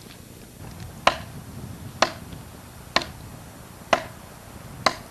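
A tool strikes a log with sharp, evenly spaced blows.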